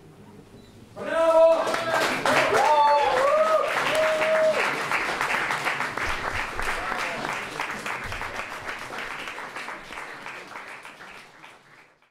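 A drummer taps and rattles on drums and cymbals.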